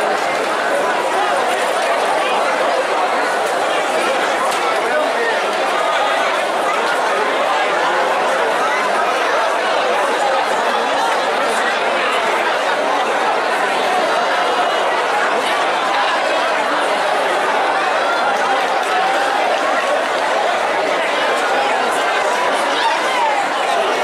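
A large brass band plays loudly outdoors.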